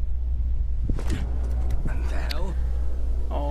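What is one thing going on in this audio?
A man exclaims in surprise.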